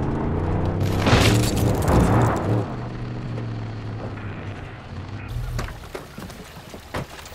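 Water splashes under a car.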